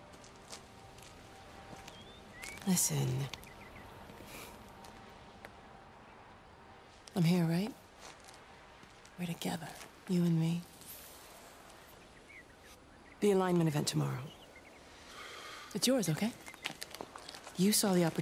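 A soft magical shimmer twinkles and swirls.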